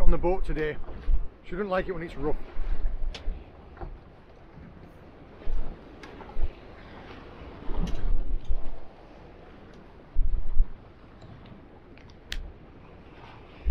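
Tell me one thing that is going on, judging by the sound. Wind gusts roar outdoors.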